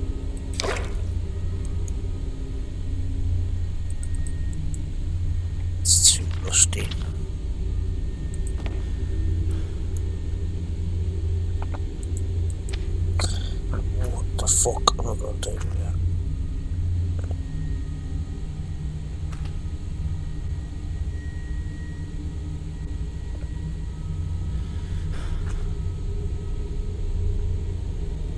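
A young man talks calmly into a close microphone.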